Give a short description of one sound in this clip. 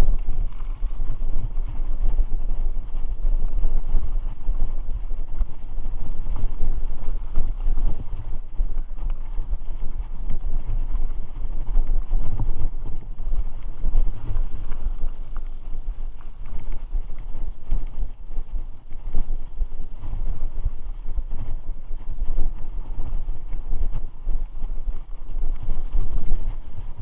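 Bicycle tyres roll and bump over a rough dirt trail.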